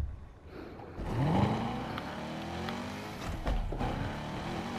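A sports car engine revs and roars as the car speeds off.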